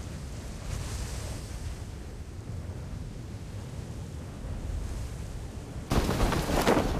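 Wind rushes steadily during a parachute descent.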